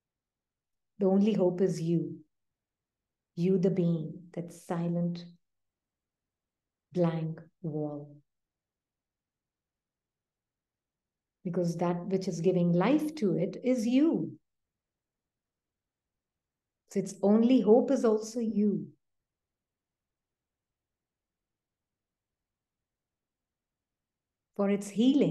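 A woman speaks calmly in pauses over an online call.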